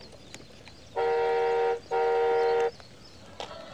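A toy motorbike gives two loud electronic beeps.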